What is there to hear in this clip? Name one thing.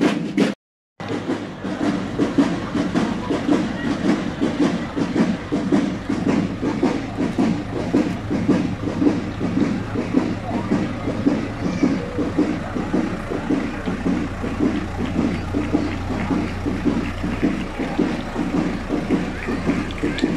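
A tractor engine rumbles steadily nearby as it rolls past.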